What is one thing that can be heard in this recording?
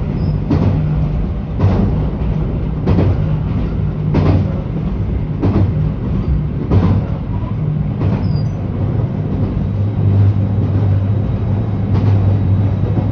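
Train wheels clack over rail joints in a regular beat.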